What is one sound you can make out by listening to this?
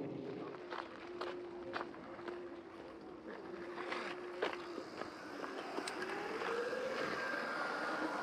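Tyres roll over gravel.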